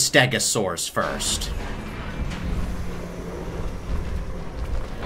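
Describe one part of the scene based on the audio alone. A heavy metal gate rumbles open.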